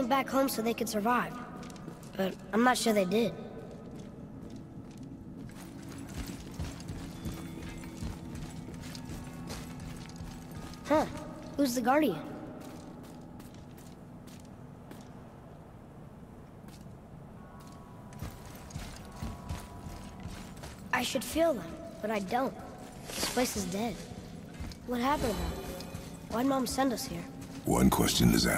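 Footsteps crunch slowly on a stone floor.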